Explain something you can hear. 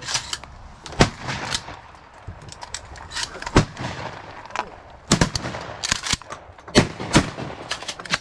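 A shotgun fires several blasts outdoors.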